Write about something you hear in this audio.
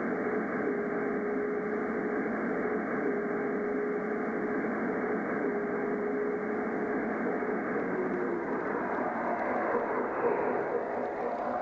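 A train rolls slowly past on the rails, wheels rumbling close by.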